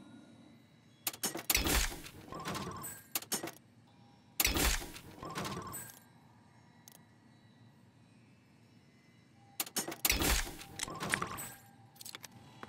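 Short electronic chimes and splatty pops sound as menu choices are made.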